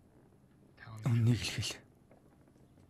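A woman sobs quietly.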